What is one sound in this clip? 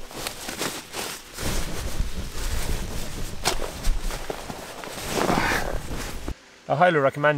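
A sleeping pad crinkles and rustles as a man handles it.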